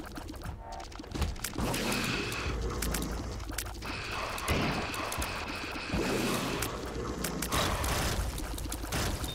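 Electronic game shots and blasts pop and thud rapidly.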